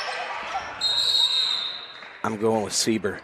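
A referee's whistle blows sharply in a large echoing gym.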